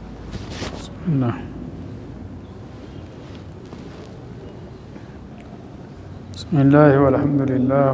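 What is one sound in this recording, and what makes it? An elderly man speaks calmly and slowly into a close microphone.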